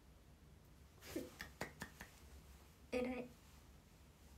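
A young woman speaks briefly and cheerfully, close up.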